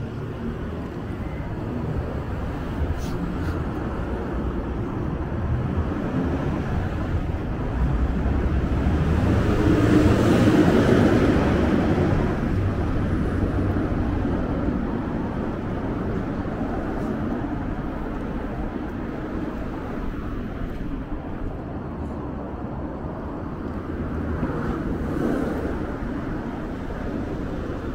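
Traffic hums steadily along a nearby road outdoors.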